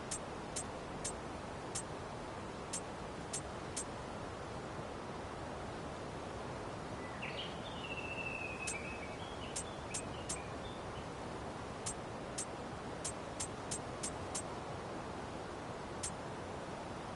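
Game menu clicks tick sharply again and again.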